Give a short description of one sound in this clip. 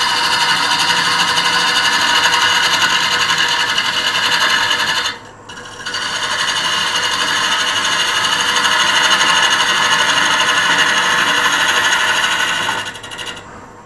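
A gouge scrapes and hisses against spinning wood on a lathe.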